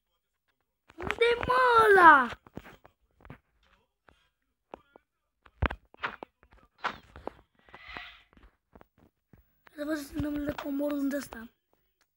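A boy talks with animation, close to a microphone.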